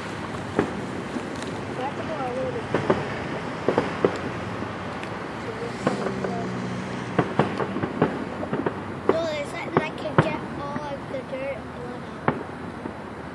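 Fireworks boom and pop in the distance.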